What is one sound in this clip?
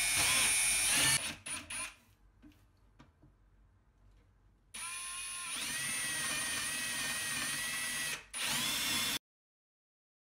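A cordless drill whines loudly in short bursts as it bores into wood.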